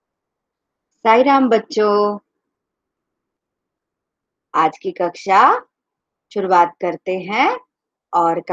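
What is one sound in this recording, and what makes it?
A middle-aged woman speaks warmly in short phrases over an online call.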